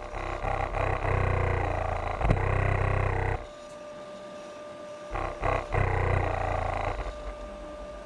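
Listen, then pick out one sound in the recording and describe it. A subwoofer booms with loud, deep rattling bass in bursts.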